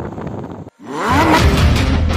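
A sports car engine roars.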